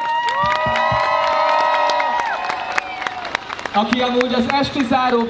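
A crowd of young men and women cheers loudly outdoors.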